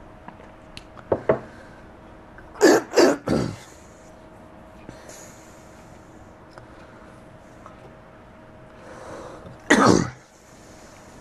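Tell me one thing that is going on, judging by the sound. A man speaks briefly and calmly close to a microphone.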